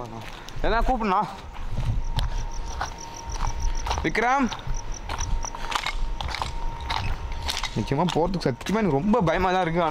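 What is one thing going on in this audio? Footsteps crunch on loose rubble.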